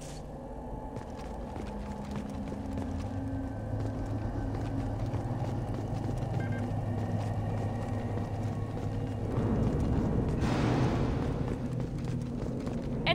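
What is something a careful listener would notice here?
Heavy boots thud on a metal floor as a soldier in armour walks.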